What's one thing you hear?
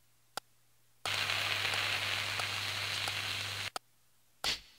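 Liquid bubbles and sizzles in a spoon.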